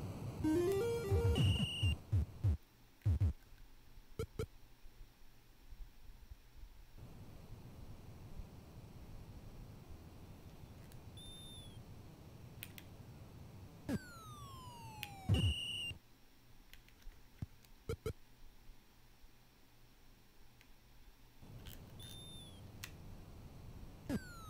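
Electronic video game beeps and bleeps chirp in short bursts.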